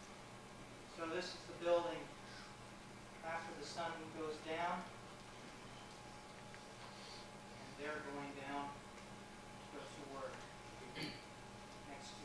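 A man speaks through a microphone in a large hall, in short bursts.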